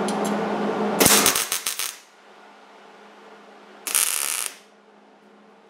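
An electric welder crackles and sizzles in short bursts.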